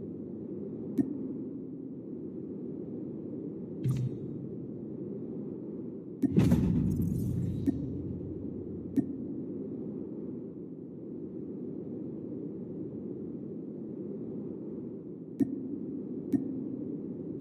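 Short interface clicks sound as menu buttons are pressed.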